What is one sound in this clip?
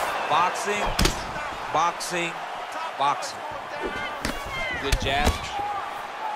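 Punches land with sharp, heavy thuds.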